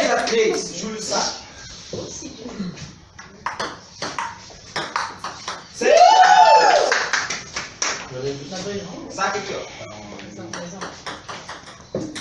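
Men nearby talk and laugh.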